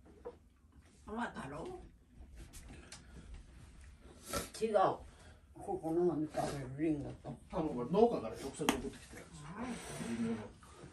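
A middle-aged man talks nearby.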